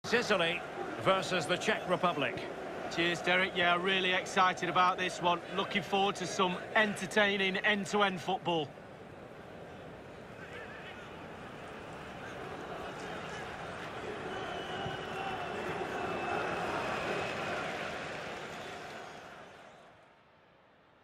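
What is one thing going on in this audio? A large crowd cheers and roars in a big open stadium, swelling and then fading.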